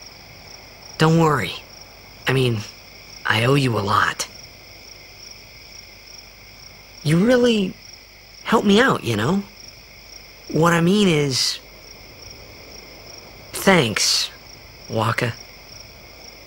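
A young man speaks calmly and warmly.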